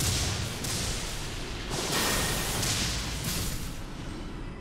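Lightning magic crackles and bursts loudly.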